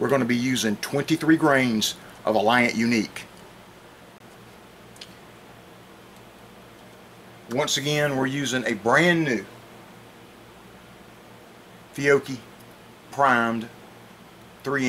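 A middle-aged man talks calmly and close to a microphone, with pauses.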